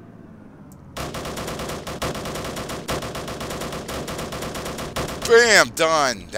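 A rapid-fire cannon shoots in a long, fast burst.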